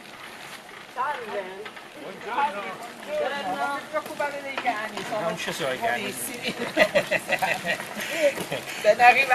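Young women talk with animation nearby.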